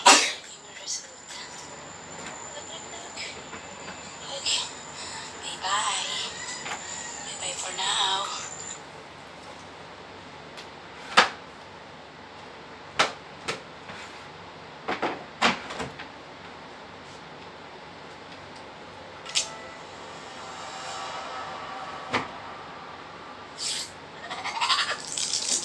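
Objects knock and clatter on a hard surface.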